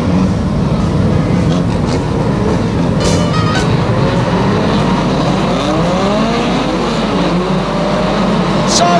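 Several car engines roar loudly and rev up and down.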